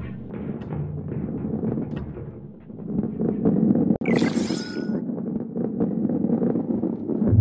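A heavy ball rolls along a wooden track with a low, steady rumble.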